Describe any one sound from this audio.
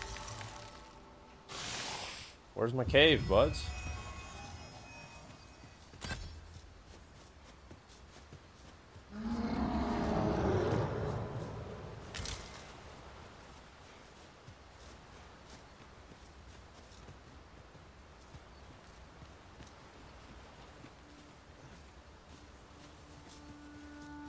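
Footsteps crunch softly on grass and dirt.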